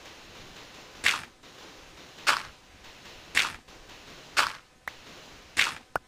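Picks knock steadily against stone as blocks are dug out.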